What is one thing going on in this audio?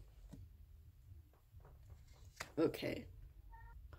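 A card is laid softly onto a table.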